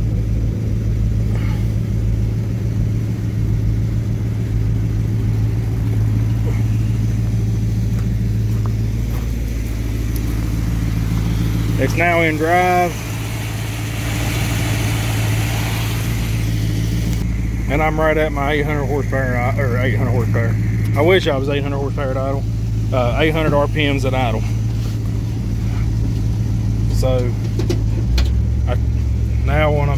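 An engine idles with a steady low hum.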